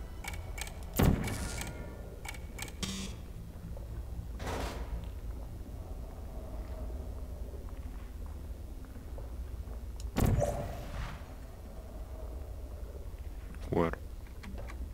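A portal gun fires with short sharp zaps.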